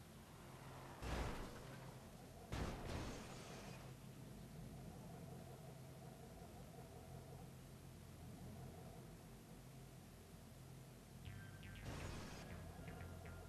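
Cars bump into each other with dull thuds.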